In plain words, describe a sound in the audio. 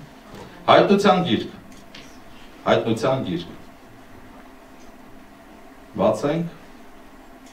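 A middle-aged man speaks calmly into a microphone in short phrases with pauses, heard through a loudspeaker in a room.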